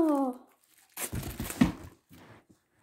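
Plastic wrap crinkles in a young man's hands.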